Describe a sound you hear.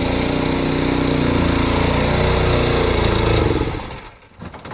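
A tractor engine revs and labours loudly.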